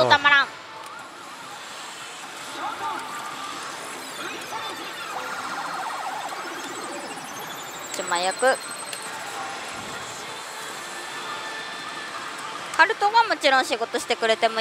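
A slot machine plays electronic jingles and sound effects.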